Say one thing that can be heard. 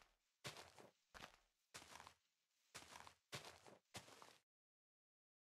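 Leaves crunch as they are broken in a video game.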